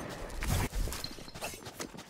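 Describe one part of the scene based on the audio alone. A magic ability whooshes and crackles.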